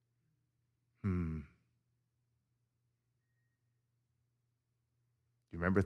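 A middle-aged man speaks calmly through a microphone, with long pauses.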